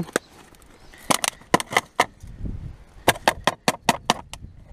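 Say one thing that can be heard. Plastic bottles and cans clatter and knock together.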